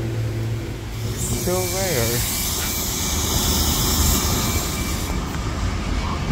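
Air brakes on a bus let out a loud hiss.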